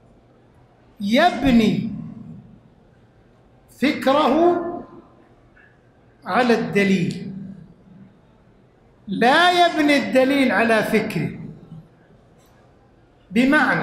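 An elderly man speaks with emphasis into a microphone in short phrases separated by pauses.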